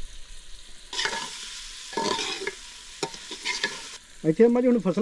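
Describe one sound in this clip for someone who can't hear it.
A metal spoon scrapes and clinks against a cooking pot.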